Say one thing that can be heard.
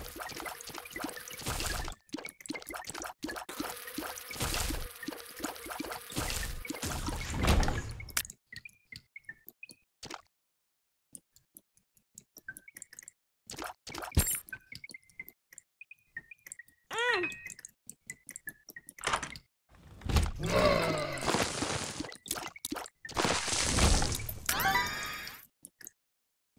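Small video game shots pop and splash in quick bursts.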